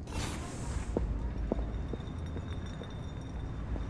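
Footsteps tap on a stone pavement.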